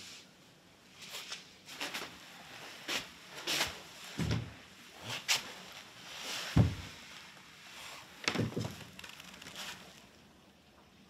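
Cloth rustles as a man moves and sits down.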